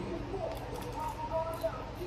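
A young man crunches chips while chewing.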